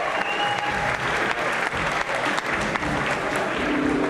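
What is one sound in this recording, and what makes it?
People applaud in a large hall.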